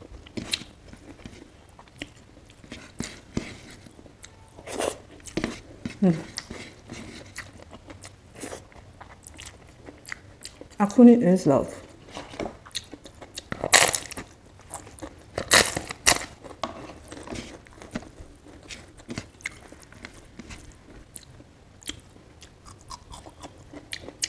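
A woman chews food wetly and smacks her lips close to the microphone.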